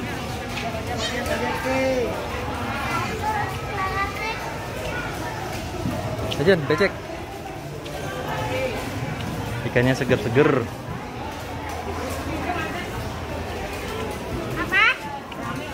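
Women chatter close by.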